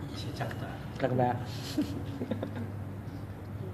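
A young man laughs close by.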